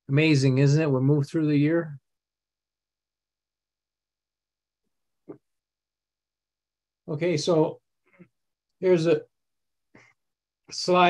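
An elderly man speaks calmly over an online call, pausing between phrases.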